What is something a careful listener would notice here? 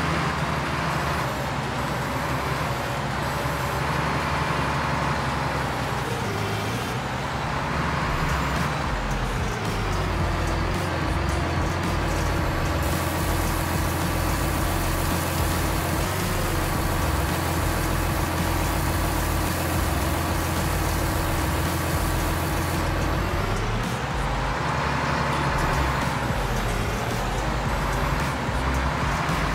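A heavy diesel loader engine rumbles steadily, its pitch rising and falling as it revs.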